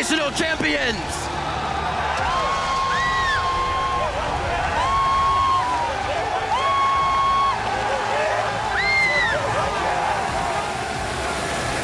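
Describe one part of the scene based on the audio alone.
A large crowd cheers and roars loudly in a big echoing hall.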